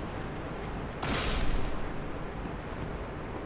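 A sword swings and strikes with a metallic clash.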